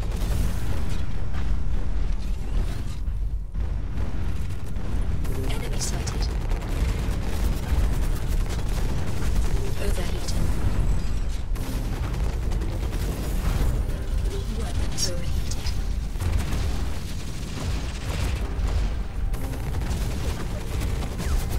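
A large mechanical walker stomps and whirs with a low rumble.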